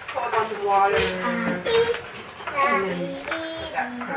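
A newborn baby fusses and whimpers close by.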